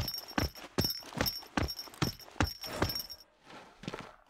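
Upbeat dance music plays with a strong, quick beat, then stops.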